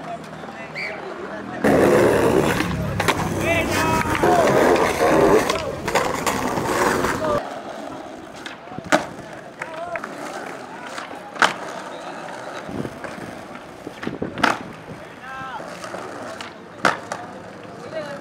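A skateboard snaps and lands with sharp clacks.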